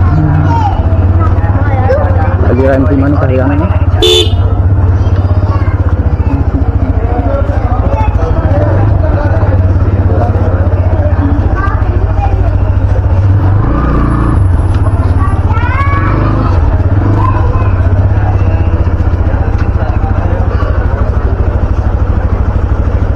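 A motorcycle engine idles and putters steadily close by.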